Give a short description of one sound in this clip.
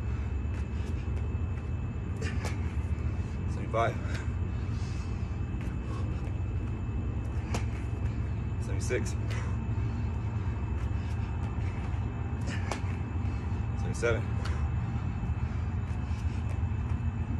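Feet thump and slap on an exercise mat.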